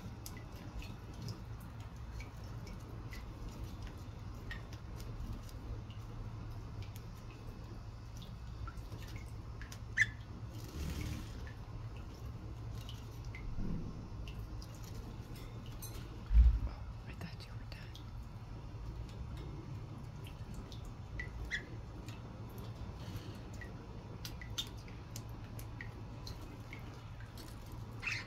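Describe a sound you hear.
A budgerigar chirps and twitters softly.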